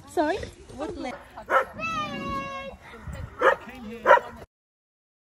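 Young children talk and squeal excitedly close by.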